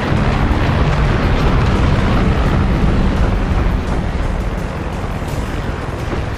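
A helicopter's rotor and engine roar steadily.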